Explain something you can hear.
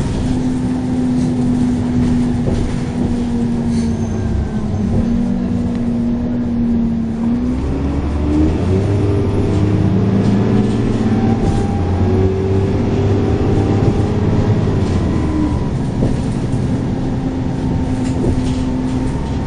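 A bus engine hums and whines steadily, rising and falling in pitch as the bus changes speed.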